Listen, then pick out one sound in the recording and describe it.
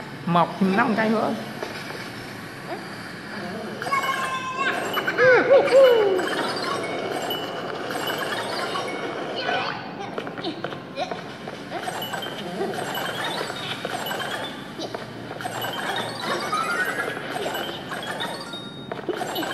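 A mobile game plays lively music from a small speaker.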